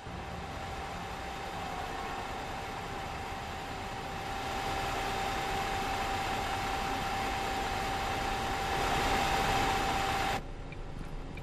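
A bus pulls away, its engine growing louder, then cuts off.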